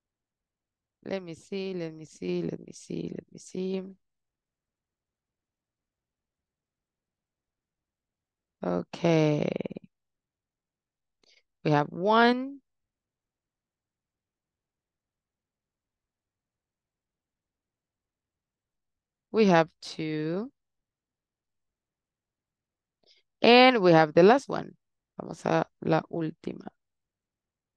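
A young woman speaks calmly into a headset microphone over an online call.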